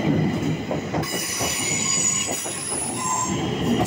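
Train wheels squeal with a high whine on the rails.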